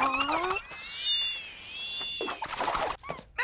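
A small animal squeals in high, wavering tones.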